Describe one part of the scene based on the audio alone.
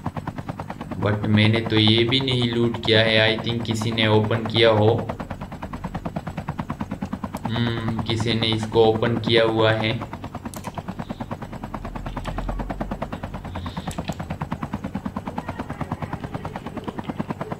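A helicopter's rotor chops steadily and rapidly.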